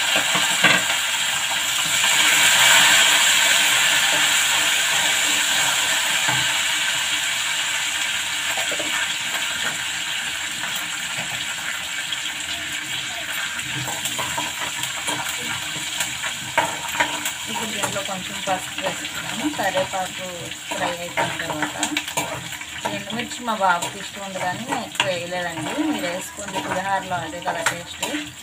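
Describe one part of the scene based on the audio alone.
A metal ladle scrapes and clinks against a pan.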